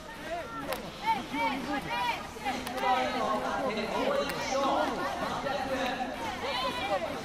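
Young women slap hands in high fives.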